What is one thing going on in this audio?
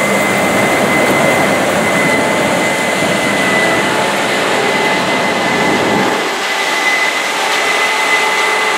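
A combine harvester engine roars loudly close by, then fades a little into the distance.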